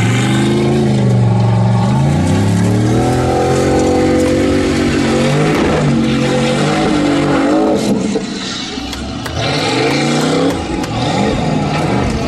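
Tyres spin and spray dirt and gravel.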